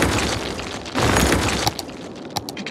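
A structure crumbles loudly in a game's demolition sound effect.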